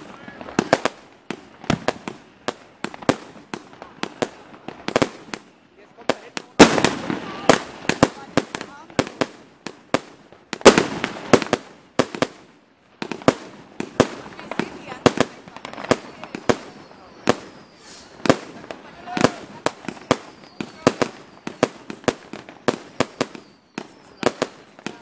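Fireworks burst with rapid loud bangs and pops.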